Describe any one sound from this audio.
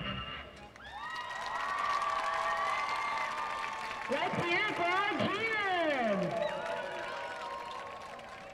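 A group of young women shout a cheer together outdoors.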